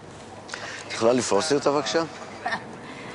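An elderly man speaks.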